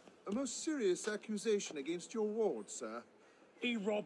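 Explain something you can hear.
A man speaks calmly in a conversation.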